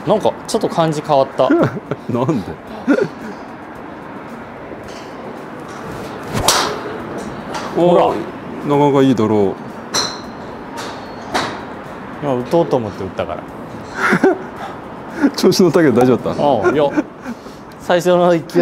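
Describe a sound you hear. A young man talks casually and with animation, close by.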